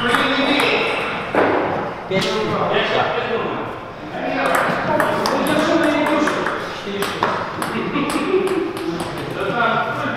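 A table tennis ball clicks back and forth off paddles and the table in an echoing hall.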